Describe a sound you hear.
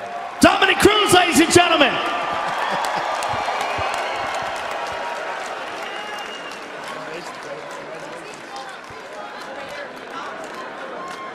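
A large crowd cheers and roars in a big echoing arena, slowly fading.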